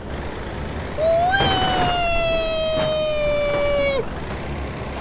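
A truck splashes into water.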